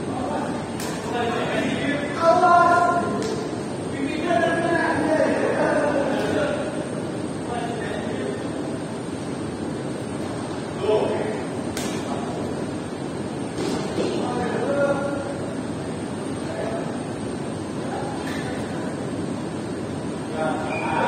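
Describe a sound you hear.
Young men call out and shout in a large echoing hall.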